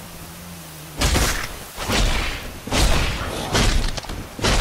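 A sword swings and strikes with heavy whooshing blows.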